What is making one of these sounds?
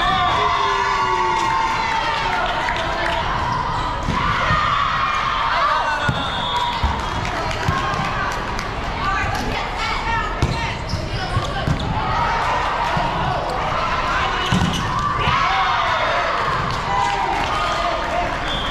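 Shoes squeak sharply on a hard court floor in a large echoing hall.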